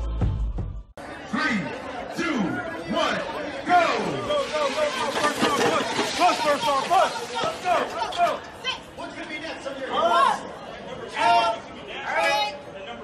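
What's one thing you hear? A crowd of men and women cheers and shouts.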